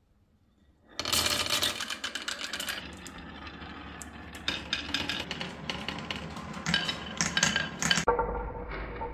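Glass marbles rattle and clatter down a wooden track.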